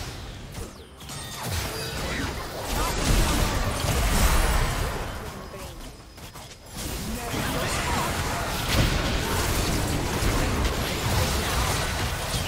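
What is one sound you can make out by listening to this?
Magic spells whoosh, crackle and burst in a busy fantasy game battle.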